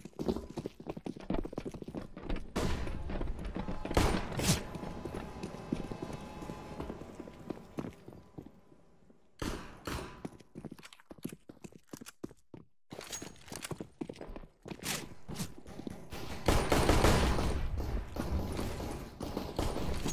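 Footsteps tap quickly on hard ground.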